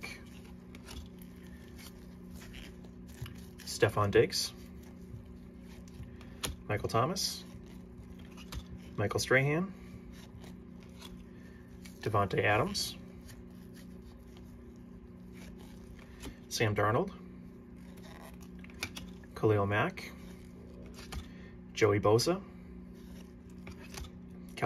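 Glossy cards slide and tap against each other as they are shuffled by hand.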